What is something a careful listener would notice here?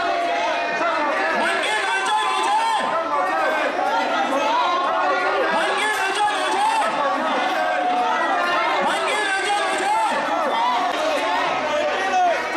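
A man shouts through a handheld loudspeaker.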